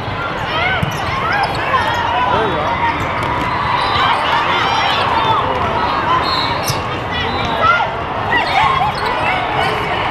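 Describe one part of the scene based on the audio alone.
A volleyball thuds off players' hands and arms.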